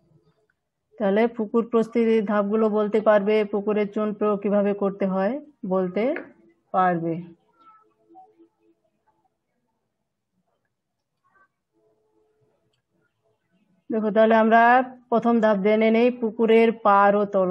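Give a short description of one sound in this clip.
A woman speaks calmly, as if explaining, heard through a microphone.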